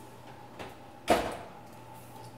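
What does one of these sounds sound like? An oven door thuds shut.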